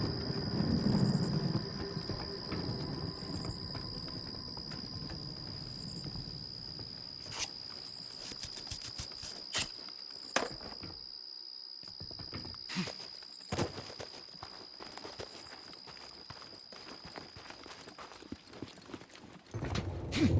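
A person walks with footsteps on hard ground.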